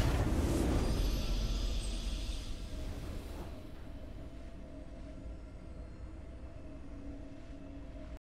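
A short triumphant fanfare plays and rings out.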